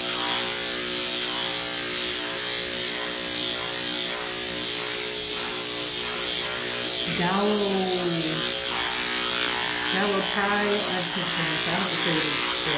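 A brush strokes softly through a dog's fur.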